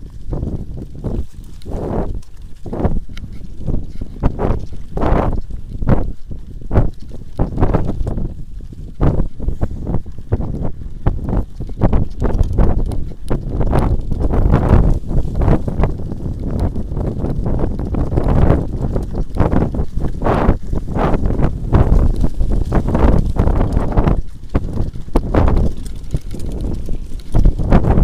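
Bicycle tyres roll and bump over a rough grassy track.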